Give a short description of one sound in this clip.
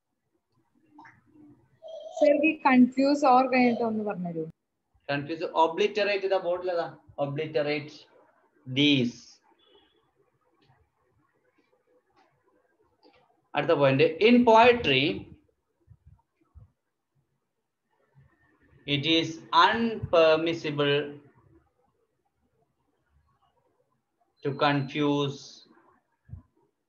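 A man speaks close by in short bursts with pauses, explaining calmly.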